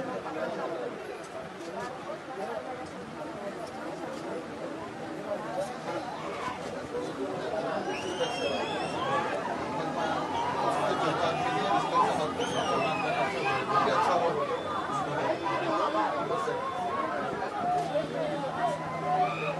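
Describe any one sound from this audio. A crowd of men and women talk over one another nearby.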